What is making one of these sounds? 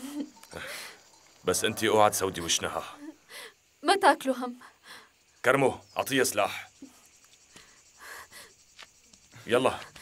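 A young woman speaks and laughs softly up close.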